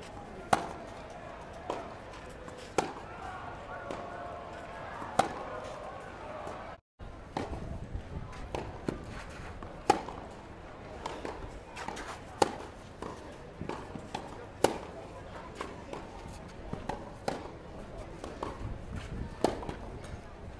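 Tennis balls are struck sharply back and forth with rackets.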